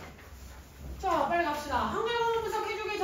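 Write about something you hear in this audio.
A young woman speaks clearly and animatedly.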